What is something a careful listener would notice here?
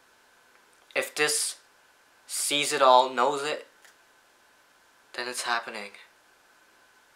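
A young man speaks calmly and close by in short bursts.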